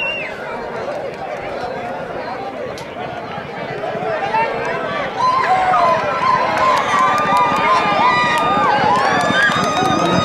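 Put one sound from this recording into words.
Horses' hooves pound on dirt, growing louder as they approach.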